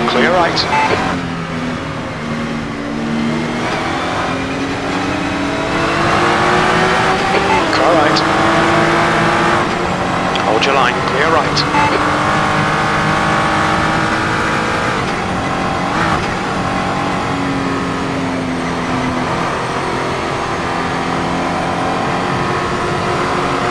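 A racing car engine roars steadily, rising in pitch as it revs up and dropping as the gears change.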